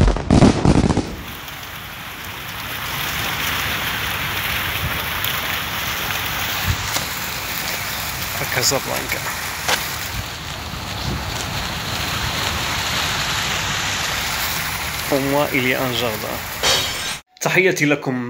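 Fountain water splashes and gurgles steadily outdoors.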